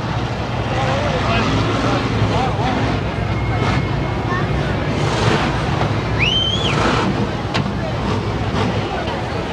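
Men talk nearby amid the crowd noise.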